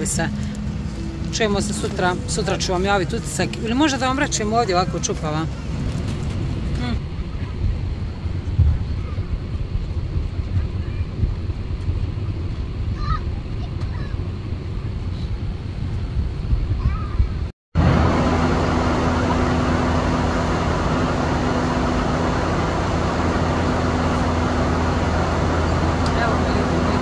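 A plane's engines drone steadily throughout.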